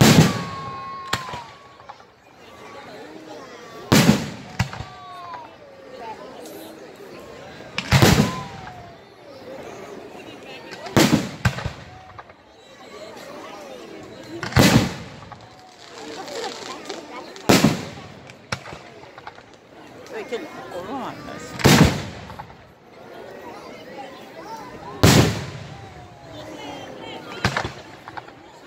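Fireworks burst with loud booming bangs, echoing outdoors.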